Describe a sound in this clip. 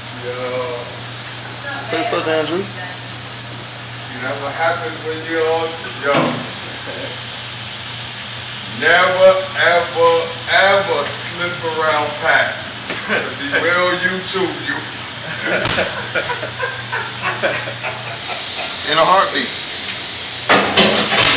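A man talks casually close by.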